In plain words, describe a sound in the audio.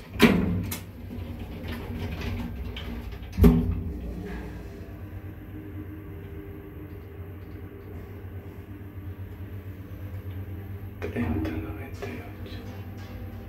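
An elevator motor hums steadily as the car moves.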